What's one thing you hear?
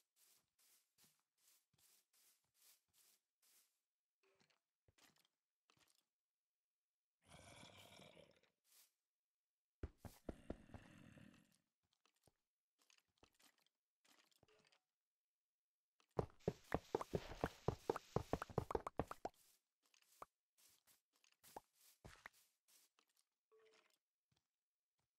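Footsteps crunch on grass at a steady pace.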